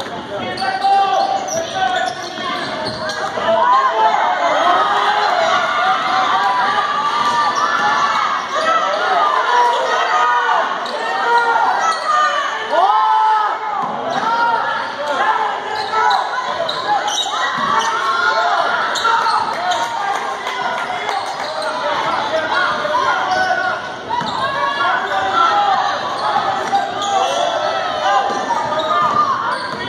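Sneakers squeak sharply and often on a hardwood floor.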